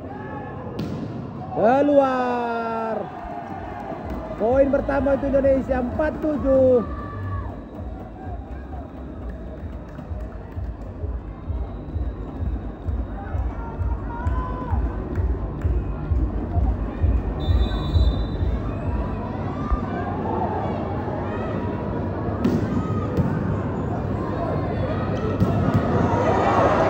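A large crowd cheers and chants in an echoing arena.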